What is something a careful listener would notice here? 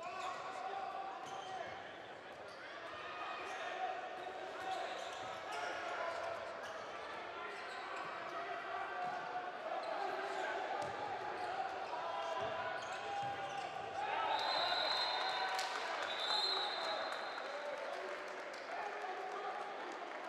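Sports shoes squeak on a hard floor.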